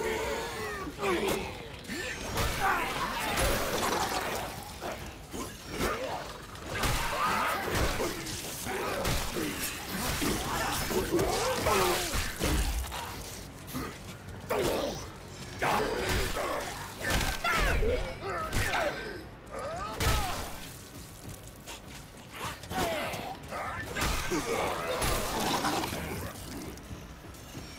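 A blade slashes and hacks into flesh with wet thuds.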